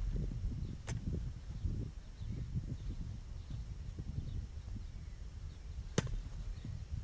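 A lacrosse stick sharply smacks a ball a couple of times.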